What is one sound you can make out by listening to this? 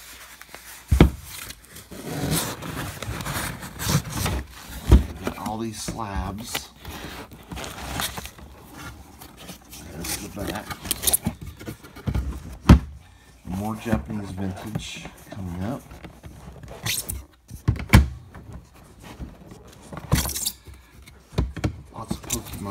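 A cardboard box is handled with soft thumps and scrapes.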